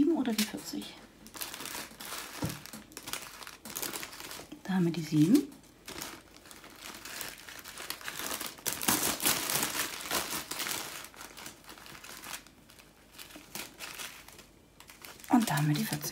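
A thin plastic sheet rustles and crinkles as it is lifted and peeled back.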